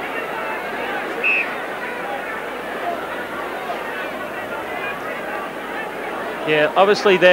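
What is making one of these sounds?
A large crowd roars and murmurs outdoors.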